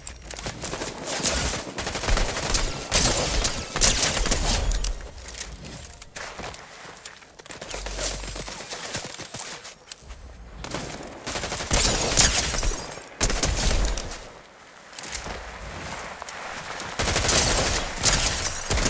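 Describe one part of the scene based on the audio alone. Footsteps patter on rock.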